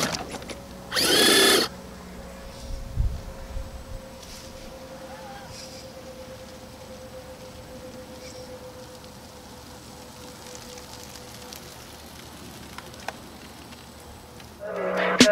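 A small electric motor whines steadily as a toy truck crawls over dirt.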